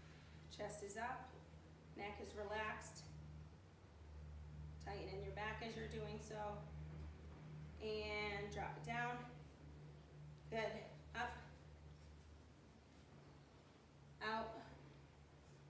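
A woman speaks calmly, giving instructions, close by.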